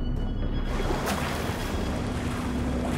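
Water splashes loudly.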